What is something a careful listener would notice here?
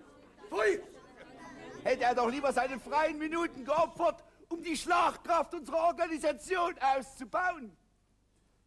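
A man sings loudly and with animation, close by.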